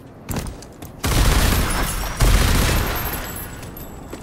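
Gunfire bangs loudly in quick bursts.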